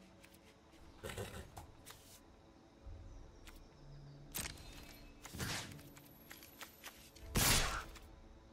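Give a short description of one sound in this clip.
Soft clicks and chimes sound as cards are selected.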